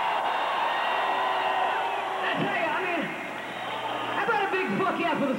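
A large crowd cheers and shouts close by.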